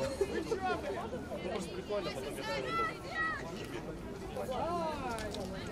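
Young women call out and talk to each other outdoors.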